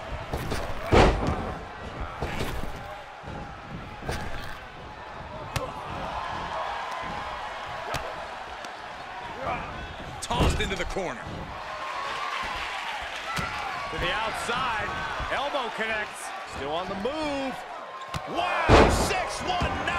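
Heavy thuds of bodies hitting the ring mat ring out.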